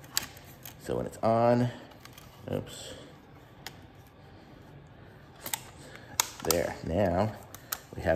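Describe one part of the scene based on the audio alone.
A plastic phone case clicks and snaps.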